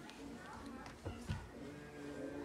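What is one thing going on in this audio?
A doll knocks against a wooden toy crib.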